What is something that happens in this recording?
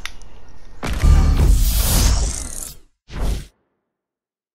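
A bright electronic chime swells and fades.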